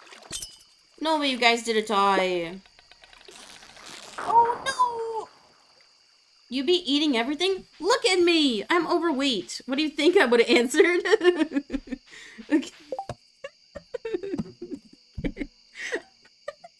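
A young woman talks and exclaims with animation close to a microphone.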